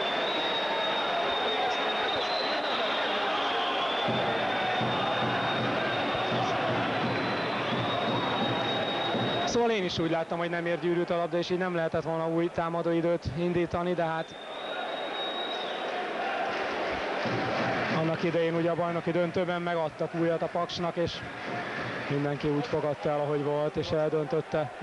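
A crowd murmurs loudly in a large echoing hall.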